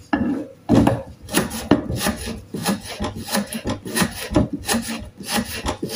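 A knife chops through onion against a wooden board in quick, repeated taps.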